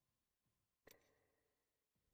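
A game menu gives a short electronic click.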